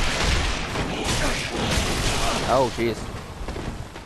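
Swords clash and strike in quick bursts.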